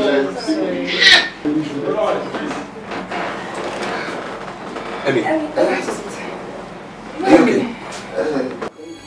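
A man speaks loudly and angrily.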